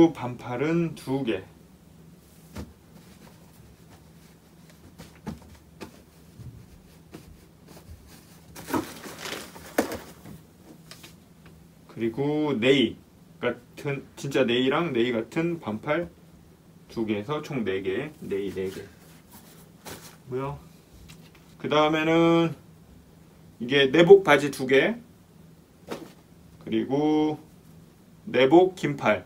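Clothes rustle as they are folded and packed.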